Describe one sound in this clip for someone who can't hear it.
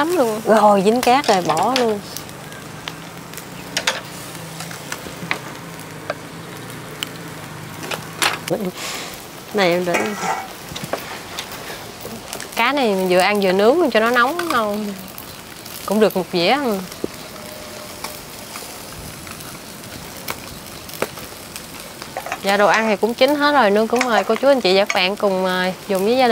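Meat sizzles softly on a charcoal grill.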